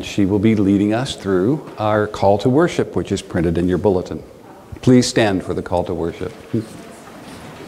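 An older man speaks calmly and clearly in a room with a slight echo.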